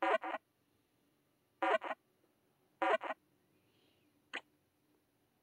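A game ball wobbles with short clicking sounds.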